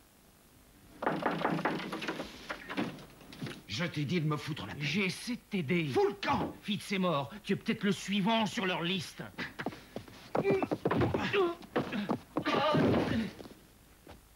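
A man speaks angrily and forcefully close by.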